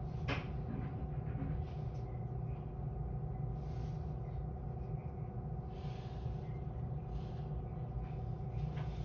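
A stationary electric train hums steadily at close range.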